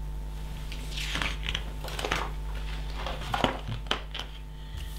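Stiff paper pages rustle and flip as they are turned.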